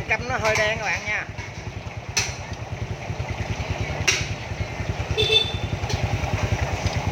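A motorcycle engine idles with a steady, low putter.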